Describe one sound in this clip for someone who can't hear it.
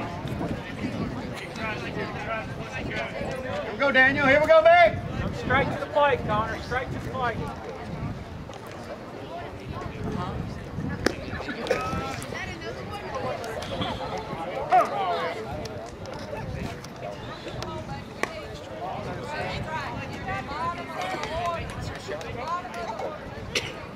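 Men call out and chatter nearby outdoors.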